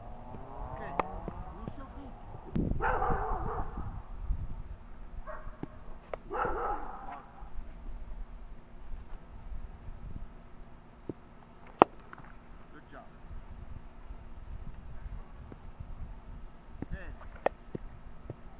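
A bat knocks a ball with a sharp crack.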